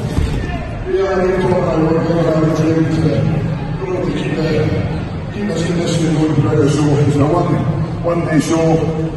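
A large crowd murmurs in the background.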